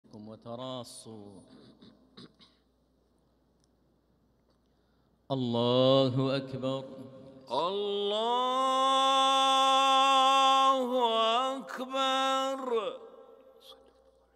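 A man chants slowly and melodically through loudspeakers in a large echoing space.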